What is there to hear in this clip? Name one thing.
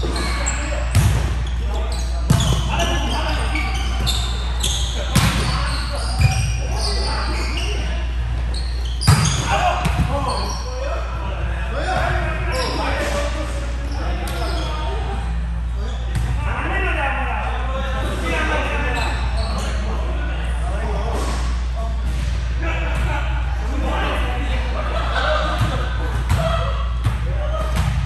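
Young men call out and talk loudly to one another, echoing in a large hall.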